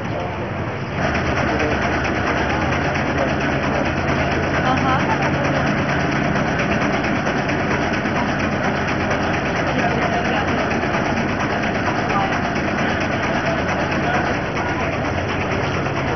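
A truck engine idles with a steady hum.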